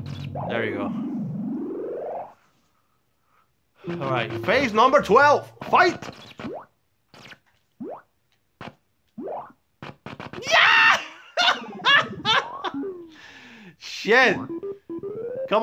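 Chiptune music and blips from an old video game play in quick bursts.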